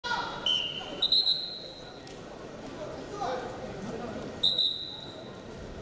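A referee blows short, sharp whistle blasts.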